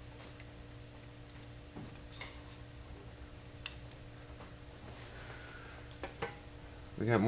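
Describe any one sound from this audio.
A metal rod knocks and clicks lightly against a steel table.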